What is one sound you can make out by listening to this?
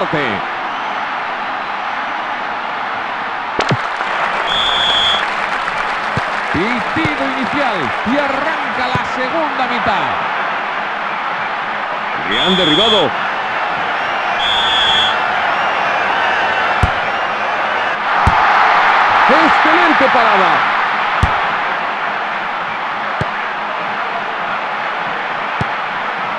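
A large stadium crowd roars steadily and swells into cheering.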